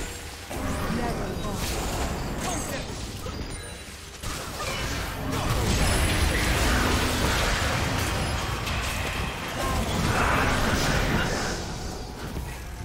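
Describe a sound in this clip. Magic spells whoosh, crackle and burst in a hectic fight.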